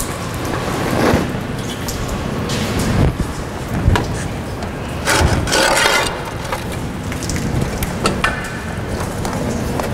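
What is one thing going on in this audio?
Parts knock and clatter on a metal table.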